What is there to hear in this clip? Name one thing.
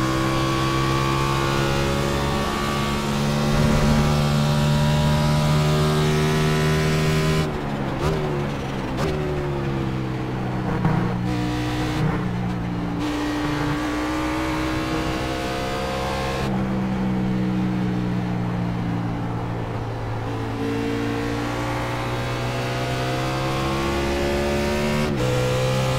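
A race car engine roars loudly at high revs, dropping in pitch as it shifts gears and slows.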